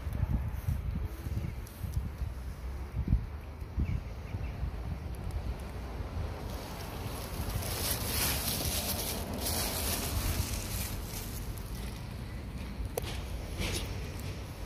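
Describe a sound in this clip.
A cat crunches dry food close by.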